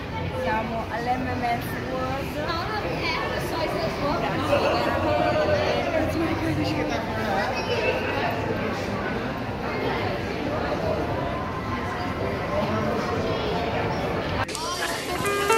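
Crowd chatter fills a busy echoing hall.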